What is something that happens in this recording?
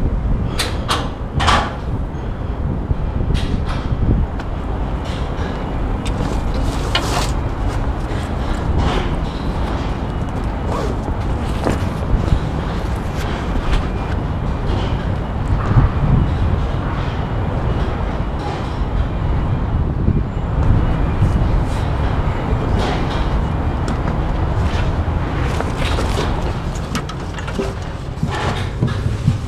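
Shoes clank on metal steps and beams.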